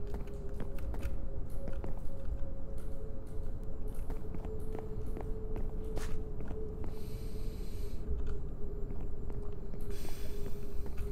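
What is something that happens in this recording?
Footsteps thud on wooden planks at a walking pace.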